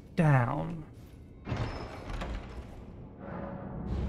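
A heavy wooden lid creaks open.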